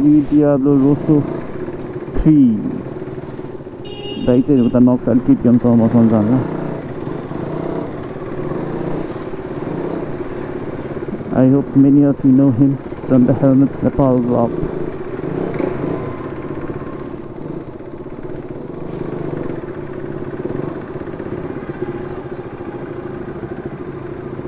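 A motorcycle engine hums and revs while riding.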